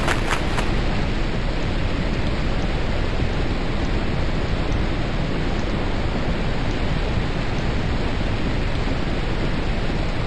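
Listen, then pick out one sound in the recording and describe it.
Wind blows steadily and strongly.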